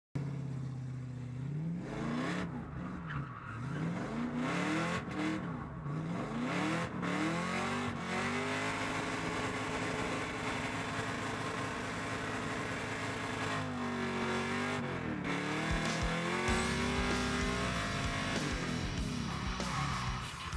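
A loud car engine roars and revs up and down sharply from close by.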